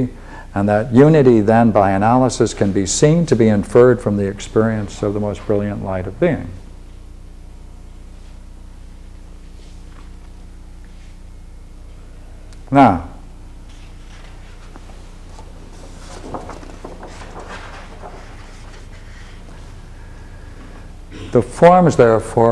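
An elderly man speaks calmly and clearly, as if lecturing.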